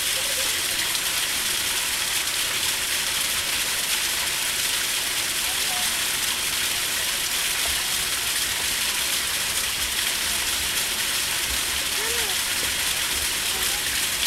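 Water splashes steadily into a pond.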